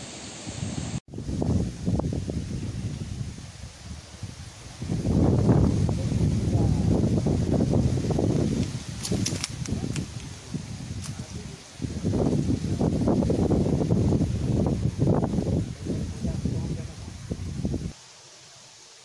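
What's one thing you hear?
Wind buffets the microphone outdoors in strong gusts.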